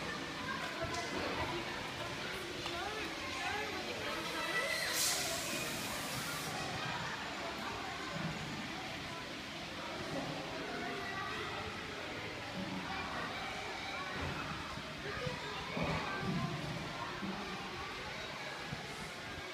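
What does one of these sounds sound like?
Young children chatter and call out in a large echoing hall.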